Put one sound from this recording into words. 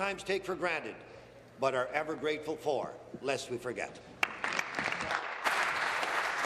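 A middle-aged man speaks formally into a microphone.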